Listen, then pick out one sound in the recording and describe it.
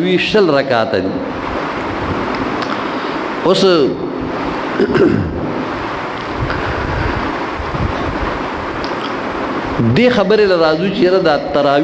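An elderly man speaks slowly and with feeling into a microphone, in a reverberant room.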